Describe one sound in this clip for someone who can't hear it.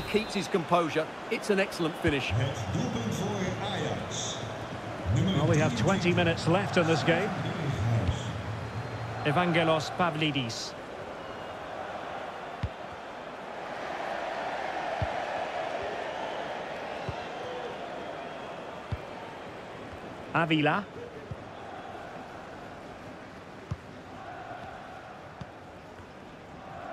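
A stadium crowd murmurs and cheers.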